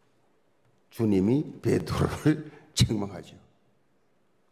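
An elderly man speaks forcefully into a microphone in a large echoing hall.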